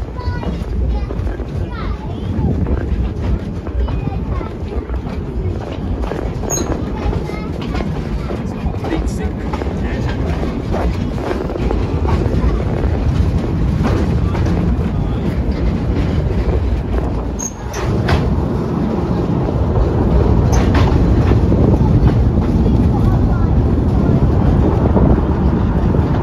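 A small train rumbles and clatters steadily along the track, heard from an open carriage.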